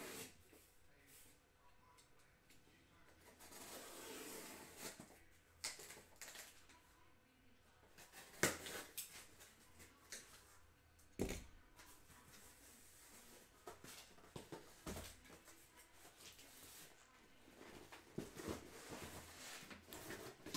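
A cardboard box is handled and thumps.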